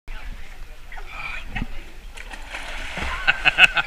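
A man splashes into water.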